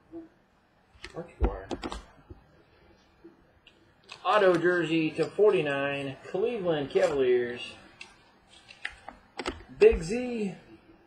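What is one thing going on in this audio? Hard plastic card cases click and tap against each other.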